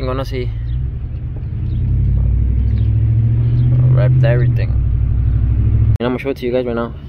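A car engine hums low and steady from inside the cab.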